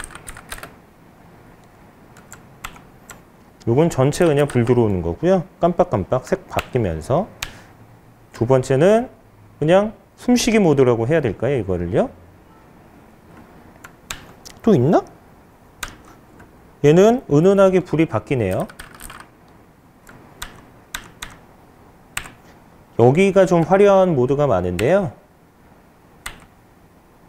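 Keyboard keys click as fingers press them.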